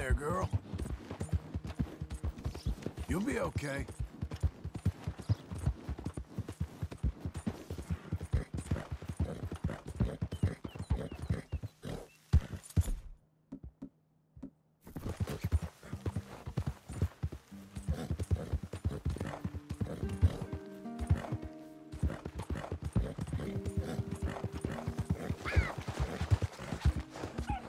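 A horse gallops on grass, hooves thudding.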